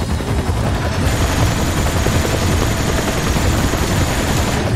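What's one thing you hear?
A heavy machine gun fires in a rapid, continuous burst.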